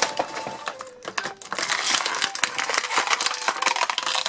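Small plastic toys clack against each other.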